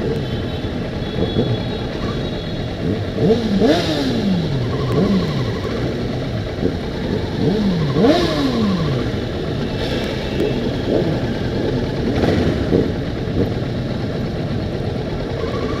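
Many motorcycle engines rumble steadily close by.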